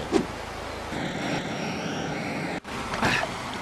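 A jetpack hisses briefly.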